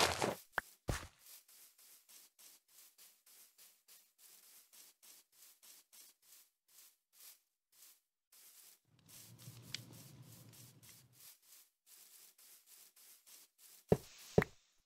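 Footsteps patter softly on grass.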